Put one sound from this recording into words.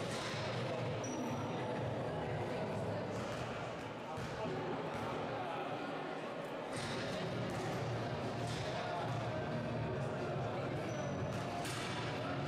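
Sneakers squeak now and then on a hard court in a large echoing hall.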